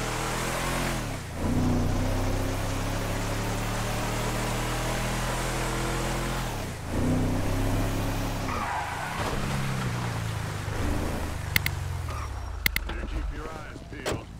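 A pickup truck engine hums steadily as it drives and revs.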